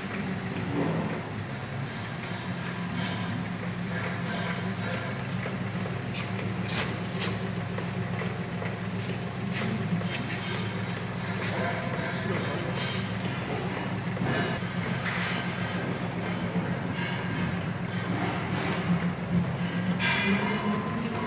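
A machine whirs and hums steadily.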